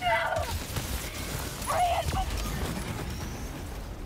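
A large creature attacks with a harsh shriek.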